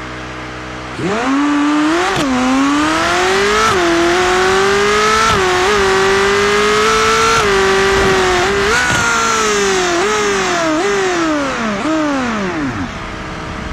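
A sports car engine revs hard and climbs through the gears.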